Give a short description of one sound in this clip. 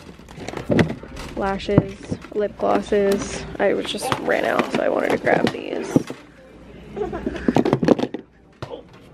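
Plastic cases clatter and rustle as a hand rummages through a drawer.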